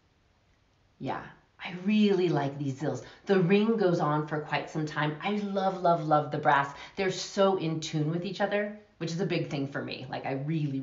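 A young woman speaks calmly and warmly, close to a microphone.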